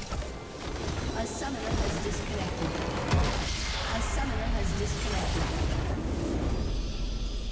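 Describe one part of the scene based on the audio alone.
Spell effects crackle and blast loudly in a hectic fight in a video game.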